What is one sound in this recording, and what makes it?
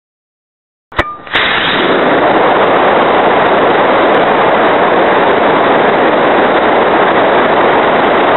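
Air rushes loudly and steadily past a flying model plane.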